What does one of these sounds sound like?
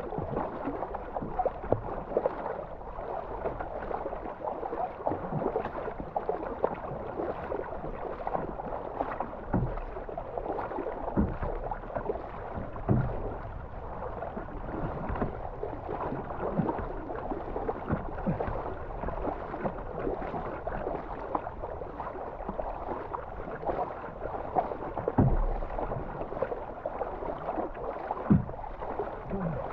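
Paddle blades splash rhythmically through river water.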